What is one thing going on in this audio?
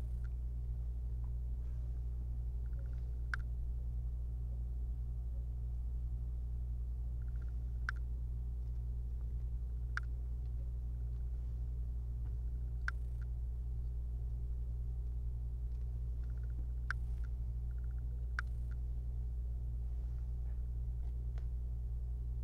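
A small screwdriver clicks and taps against plastic.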